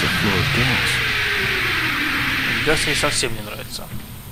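Steam hisses loudly from a pipe.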